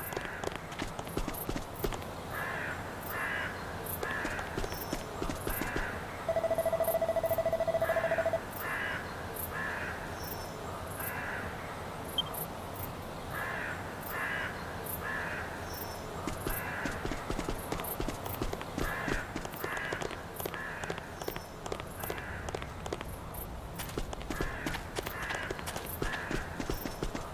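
Footsteps patter steadily on a hard floor.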